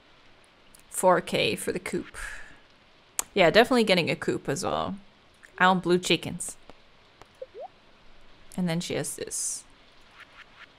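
A young woman talks casually and close to a microphone, in short bursts.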